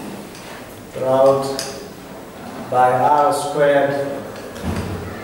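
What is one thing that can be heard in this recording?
A man speaks in a lecturing tone, with a slight echo.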